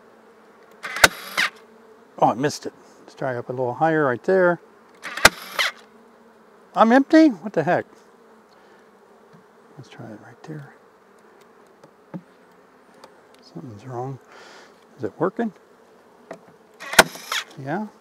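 A wooden hive frame knocks against a box.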